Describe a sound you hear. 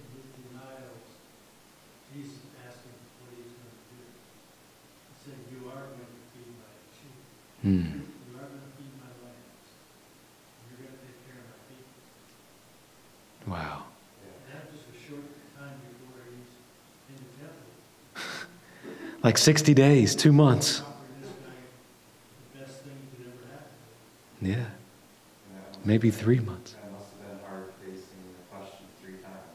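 A man lectures calmly through a microphone in a large room.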